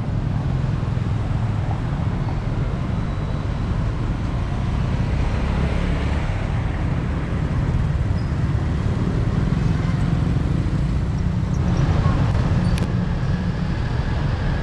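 Car engines drive by on a street.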